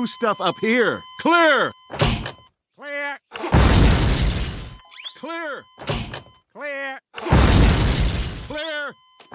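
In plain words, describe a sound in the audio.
A man speaks close to a headset microphone.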